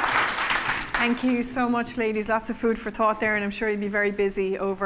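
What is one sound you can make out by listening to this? A woman speaks with animation through a microphone in a large hall.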